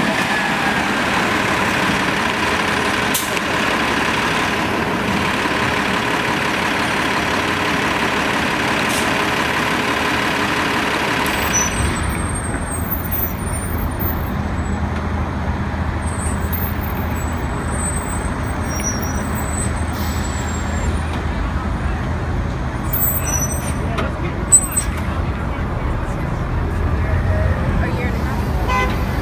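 Traffic hums steadily on a city street.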